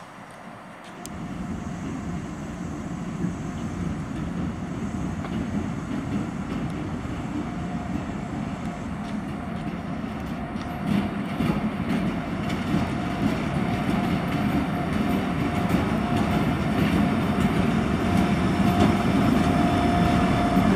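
A diesel locomotive engine rumbles loudly nearby, growing louder as it passes.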